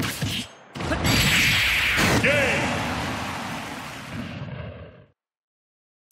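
A powerful energy blast roars and slowly fades away.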